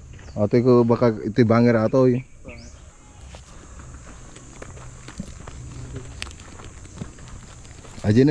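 Footsteps crunch on dry ground and leaves.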